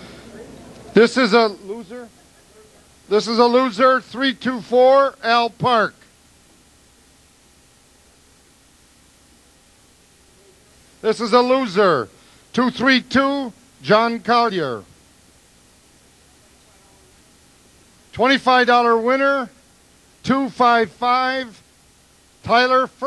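An elderly man speaks into a microphone in bursts, with pauses between.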